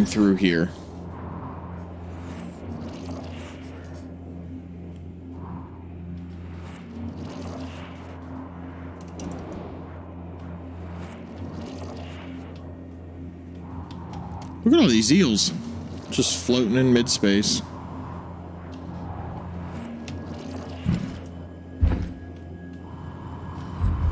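A young man talks into a microphone, close and with animation.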